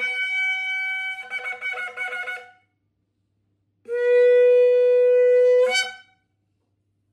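A ram's horn blows loud blasts, first in broken notes, then a long steady note.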